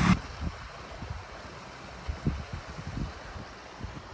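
A shallow stream trickles over rocks.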